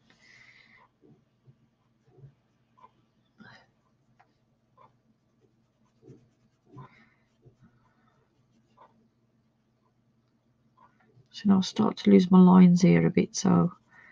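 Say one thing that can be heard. A sponge tool rubs softly across paper.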